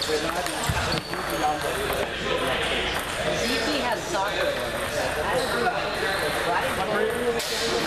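Ping-pong balls click against paddles and tables in an echoing hall.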